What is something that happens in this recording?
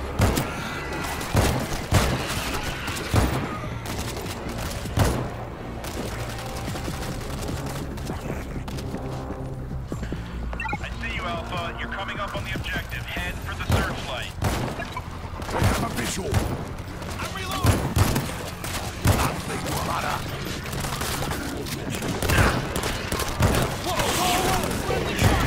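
Gunshots crack out in short bursts.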